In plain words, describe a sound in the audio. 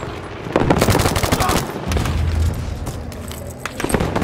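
Explosions boom in the distance.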